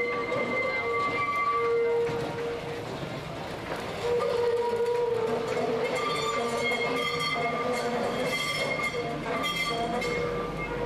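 Tram wheels squeal on a curve of track.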